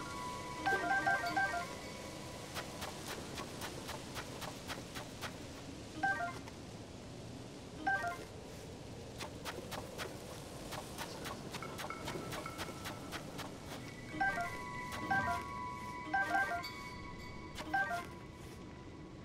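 A short bright chime rings again and again.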